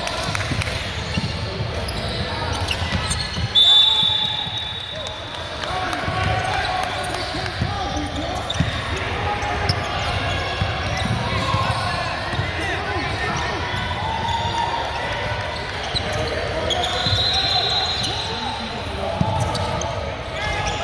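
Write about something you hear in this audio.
A crowd of people chatter in a large echoing gym.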